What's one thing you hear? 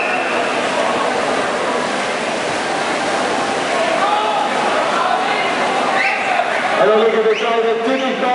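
A large crowd cheers and shouts in a big echoing hall.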